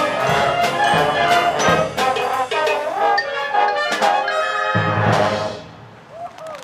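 A brass band plays loudly outdoors and ends on a held final chord.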